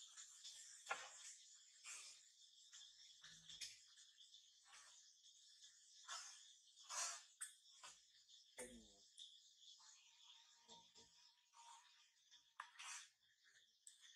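A baby monkey squeaks in short, high cries.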